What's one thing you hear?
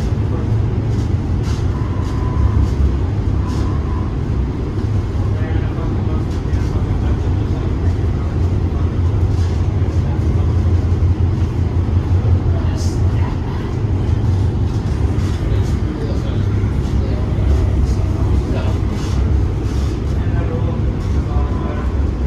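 A train rumbles steadily along its tracks, heard from inside a carriage.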